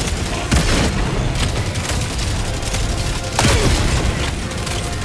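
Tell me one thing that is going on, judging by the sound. Loud explosions boom close by.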